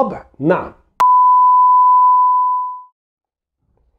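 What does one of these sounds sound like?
A steady high test tone sounds.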